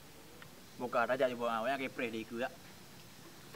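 A young man speaks briefly and tensely close by.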